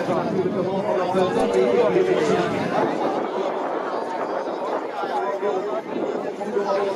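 A crowd cheers and chatters outdoors.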